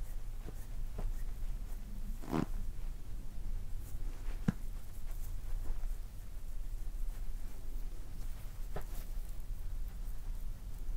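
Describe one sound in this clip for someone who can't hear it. Oiled hands softly rub and squeeze skin.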